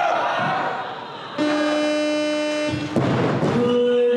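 A loaded barbell drops and crashes onto the platform.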